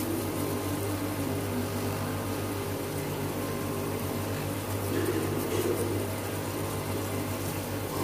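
Metal parts of a machine rattle and clatter.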